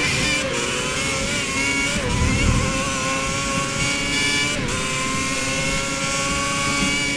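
A racing car engine screams at high revs, dropping briefly as the gears shift.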